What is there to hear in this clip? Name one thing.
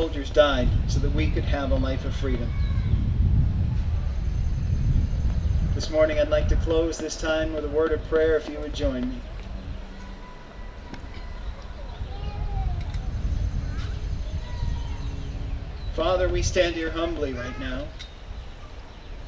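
A man speaks slowly through a loudspeaker outdoors, pausing between phrases.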